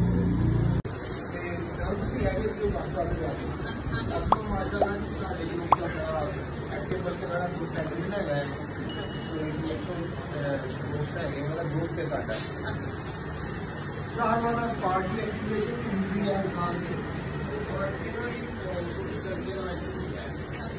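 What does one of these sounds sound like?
Several men talk among themselves.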